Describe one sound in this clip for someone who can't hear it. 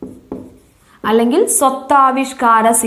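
A young woman speaks clearly and with animation, close by.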